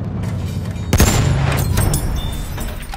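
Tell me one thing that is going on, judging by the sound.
A loud explosion booms and echoes.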